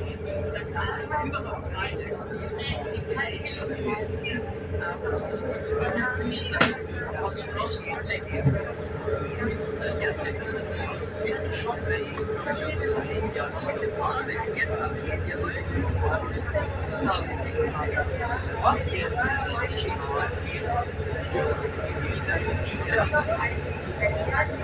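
A train carriage rattles and creaks as it moves.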